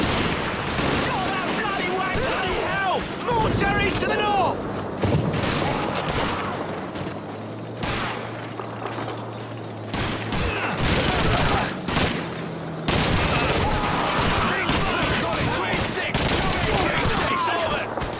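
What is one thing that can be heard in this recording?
Explosions boom and rumble nearby.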